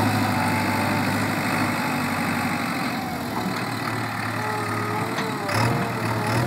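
A backhoe loader's hydraulics whine as the arm moves.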